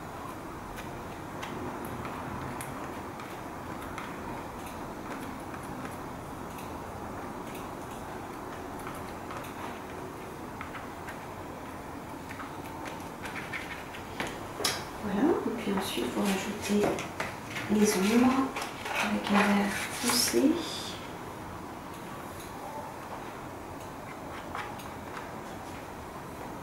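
A palette knife softly scrapes and dabs thick paint on paper.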